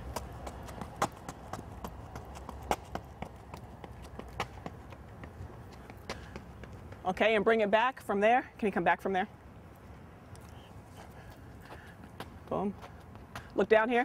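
Running shoes patter on a track.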